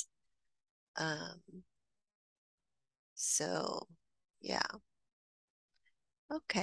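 A woman reads aloud calmly over an online call.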